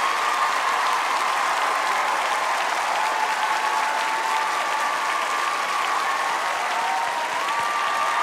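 A young woman laughs with joy.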